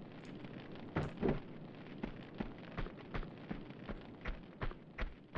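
Quick footsteps patter on a hard stone floor.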